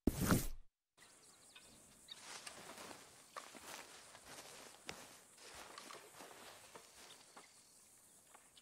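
Footsteps rustle through tall grass outdoors.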